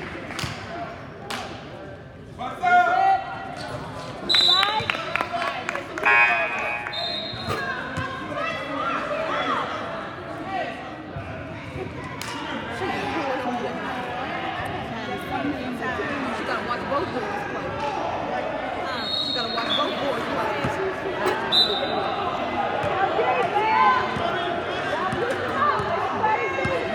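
A basketball thuds as it bounces on a hard floor.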